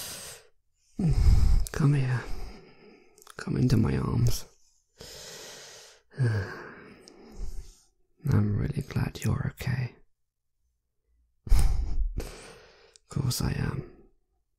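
A young man speaks softly and closely into a microphone, with pauses.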